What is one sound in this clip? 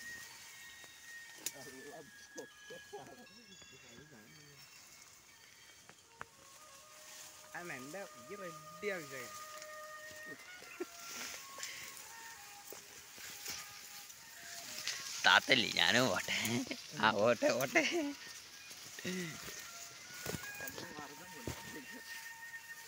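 Leaves and grass rustle and swish as people push through them.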